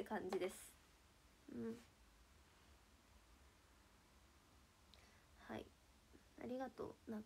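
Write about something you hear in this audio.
A young woman speaks softly and haltingly close to a microphone.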